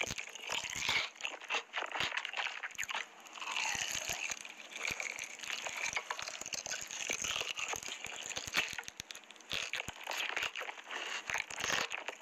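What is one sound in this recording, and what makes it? Sticky sauce squelches as fried chicken is pulled apart.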